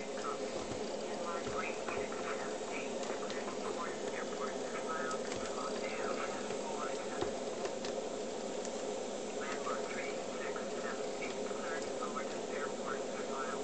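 A jet engine roars steadily through a small loudspeaker.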